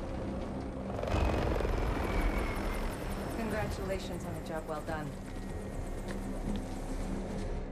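A helicopter's rotors whir steadily close by.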